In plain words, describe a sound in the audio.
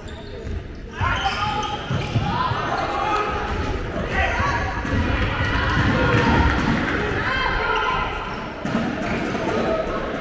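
Sneakers squeak on a hard court floor in a large echoing hall.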